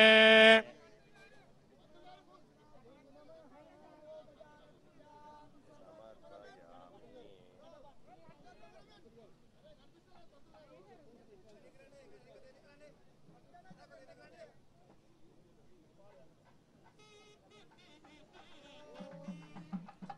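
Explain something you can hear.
A crowd of people murmurs and chatters nearby outdoors.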